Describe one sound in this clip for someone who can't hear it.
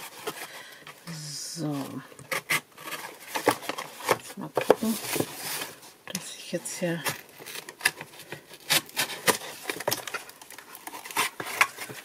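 Cardboard scrapes and rustles as it is handled.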